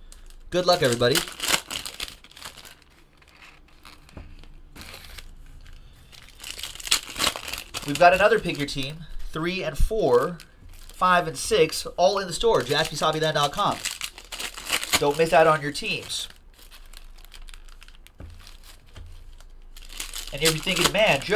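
Foil card packs crinkle and tear open.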